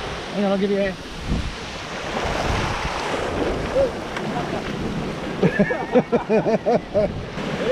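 Waves wash up onto a sandy shore.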